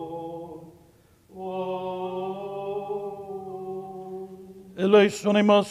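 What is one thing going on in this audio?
A man chants a long, steady prayer in a large echoing hall.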